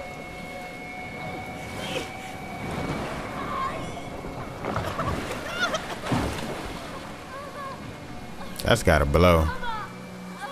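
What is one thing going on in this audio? Water splashes around hands reaching into it.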